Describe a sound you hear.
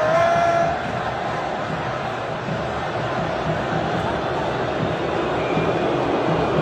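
A huge stadium crowd roars and chants loudly in a large echoing space.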